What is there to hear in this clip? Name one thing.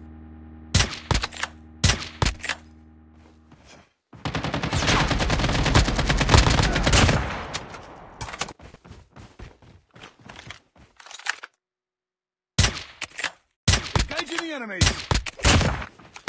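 Sniper rifle shots crack sharply, one at a time.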